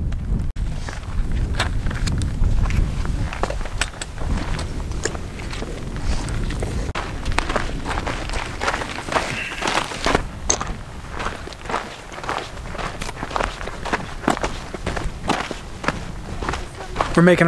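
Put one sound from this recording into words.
Footsteps crunch on a rocky gravel trail.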